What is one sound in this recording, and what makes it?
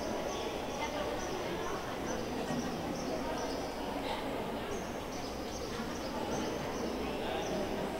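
A crowd murmurs in the background of an echoing hall.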